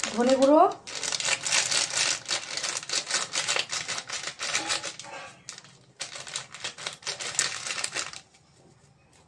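Crisp leaves crackle and tear between fingers.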